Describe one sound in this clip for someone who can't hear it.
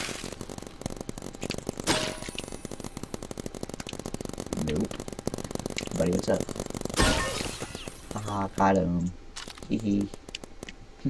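Rapid blaster shots fire in quick bursts.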